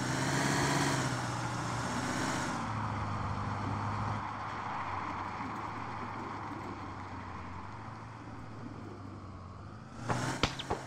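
A pickup truck engine hums steadily as the truck drives along.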